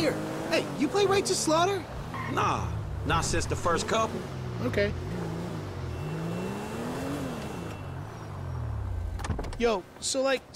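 A car engine hums and revs as a car drives along.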